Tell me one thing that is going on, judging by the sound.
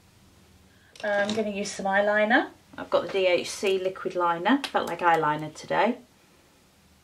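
A middle-aged woman speaks calmly and close to the microphone.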